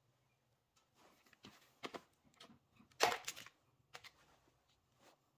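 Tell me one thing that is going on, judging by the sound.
Stiff paper rustles and crinkles.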